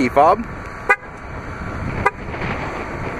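A car's door locks clunk.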